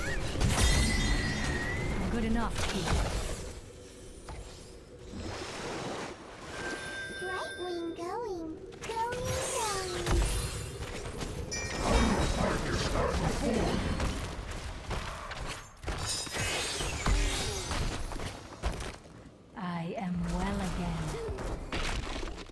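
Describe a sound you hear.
Magic blasts and weapon hits crackle and boom in a fast video game battle.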